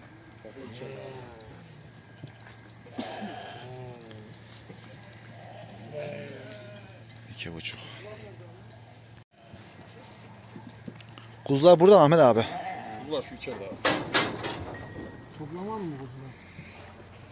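Sheep bleat repeatedly nearby, one close and loud.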